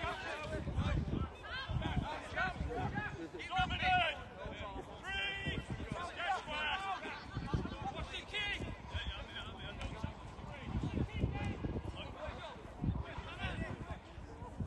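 Players' bodies thud together in tackles.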